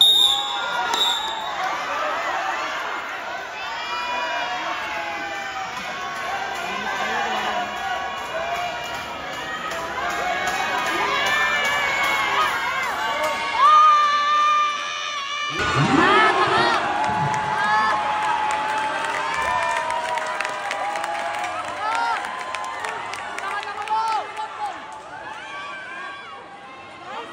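A large crowd chatters and cheers loudly.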